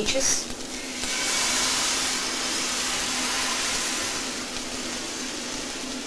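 Egg batter sizzles steadily in a hot frying pan.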